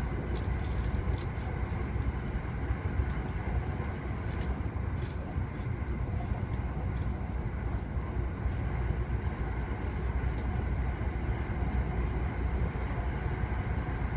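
A train rumbles steadily along its tracks, heard from inside a carriage.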